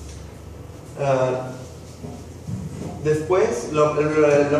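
A young man speaks calmly to a room, with a slight echo.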